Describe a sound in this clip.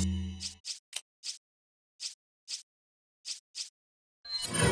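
Short soft menu blips sound one after another as a selection moves.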